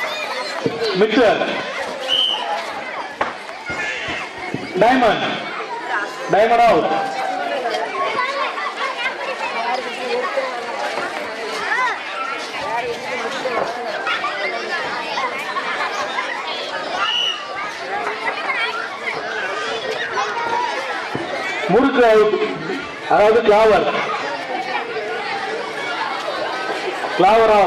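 A crowd of people chatters and calls out outdoors.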